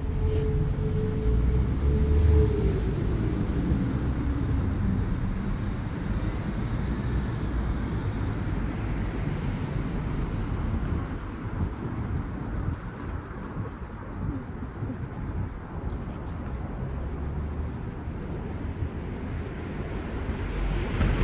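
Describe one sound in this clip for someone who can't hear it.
Traffic hums steadily in the distance.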